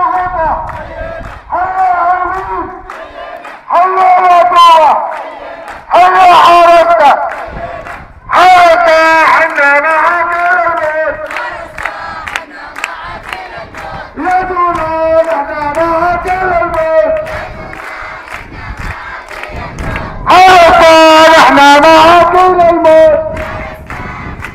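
A large crowd of men chants loudly outdoors in rhythm.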